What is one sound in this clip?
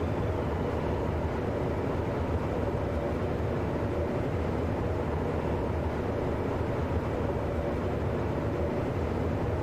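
An electric train rumbles steadily along the track at high speed.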